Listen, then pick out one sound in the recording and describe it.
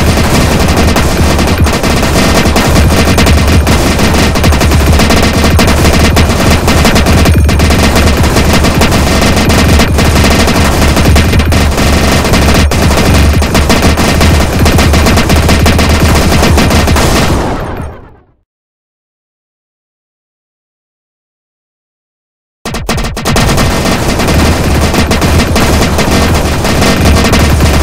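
Rapid electronic shooting and explosion effects play from a game.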